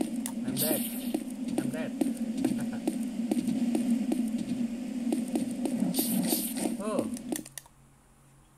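Footsteps thud steadily up stone stairs.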